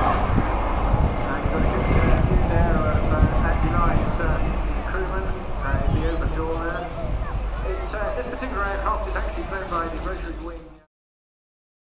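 Men and women talk nearby in a crowd.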